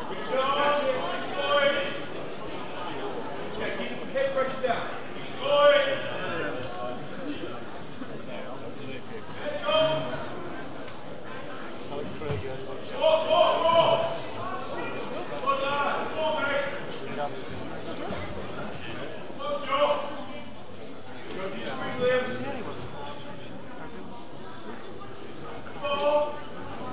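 A crowd murmurs steadily in the background.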